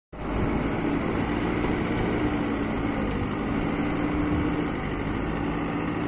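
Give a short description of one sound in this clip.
Dirt and stones scrape and crunch under a loader bucket.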